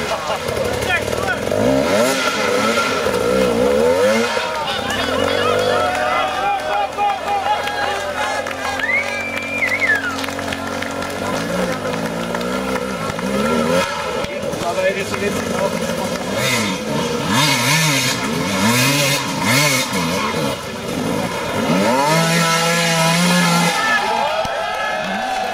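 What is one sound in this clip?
A crowd of men and women shouts and cheers nearby.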